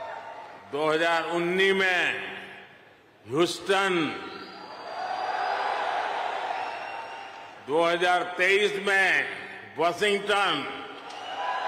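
An elderly man speaks slowly and forcefully into a microphone in a large echoing hall.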